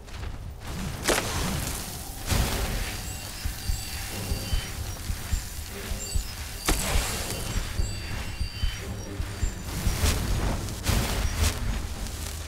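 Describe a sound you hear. A fiery blast bursts and roars with crackling sparks.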